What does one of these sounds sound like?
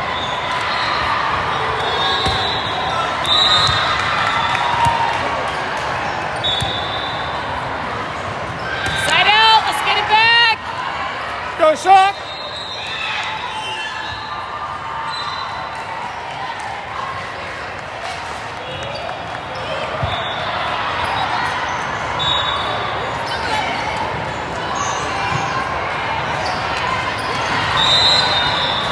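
A volleyball is struck with a smack.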